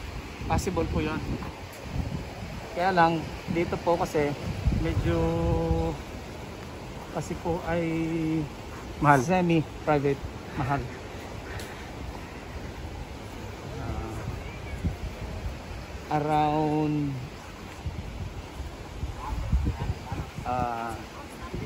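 A man talks calmly close by, in bursts with pauses.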